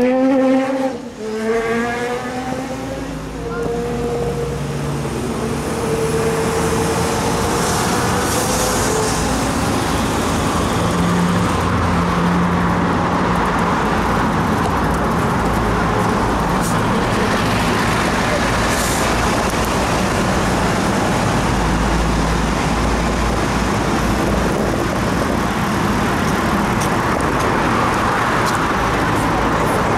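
Traffic drives past on a nearby road.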